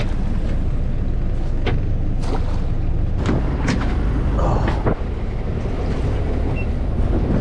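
Waves slosh against a boat's hull.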